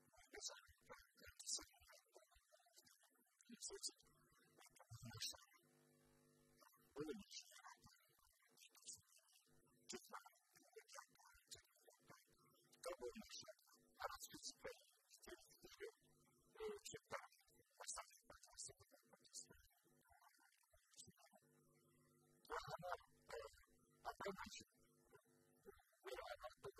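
An elderly man speaks steadily and with animation through a microphone, close by.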